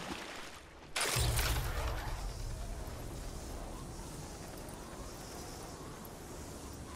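A zipline whirs steadily as a rider slides along it.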